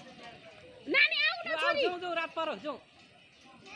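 A young child shouts out.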